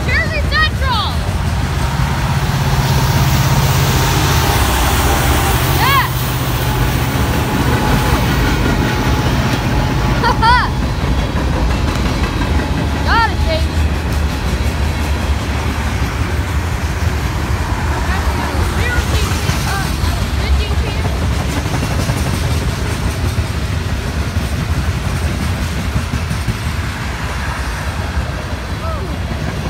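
A freight train rumbles and clatters steadily past on the rails.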